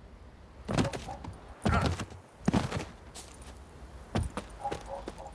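Heavy thuds land one after another as someone jumps down.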